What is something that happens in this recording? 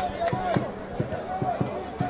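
A football is kicked across a grass pitch.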